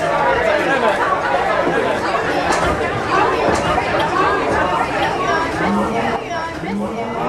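A crowd of people talks and cheers loudly in a lively room.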